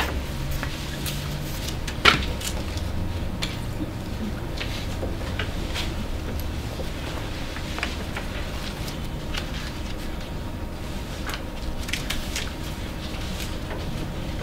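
Paper rustles and crinkles as sheets are handled.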